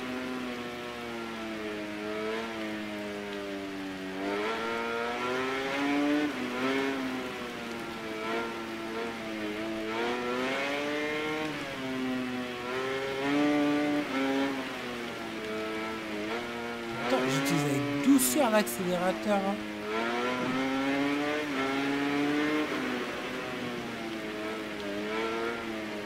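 A motorcycle engine whines and revs up and down through the gears.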